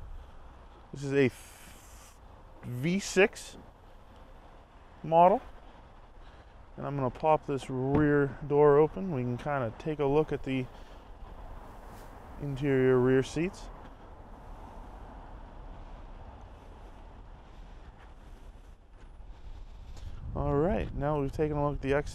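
A man speaks calmly and clearly, close to a microphone.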